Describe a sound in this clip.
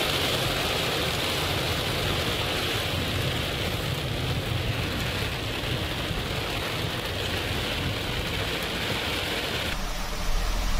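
Heavy rain and wind lash against a car windscreen.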